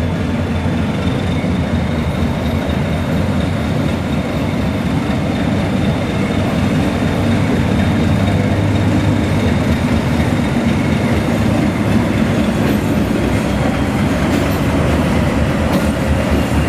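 Train wheels roll slowly over rail joints.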